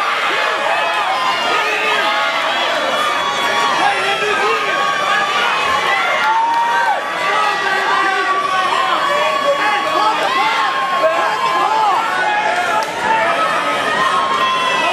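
A crowd of men and women shouts and cheers loudly and excitedly.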